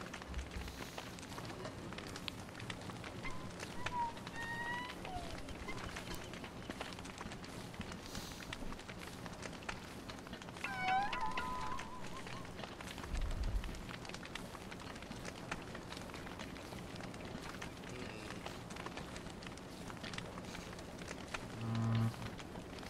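A campfire crackles steadily.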